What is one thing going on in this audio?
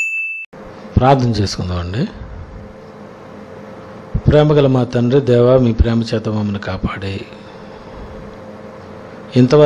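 A man speaks slowly and earnestly into a microphone.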